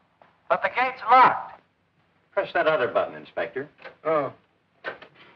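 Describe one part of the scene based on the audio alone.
An elderly man speaks with agitation, heard as if in an old film.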